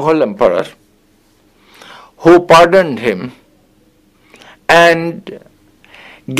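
An elderly man speaks calmly and closely, with pauses.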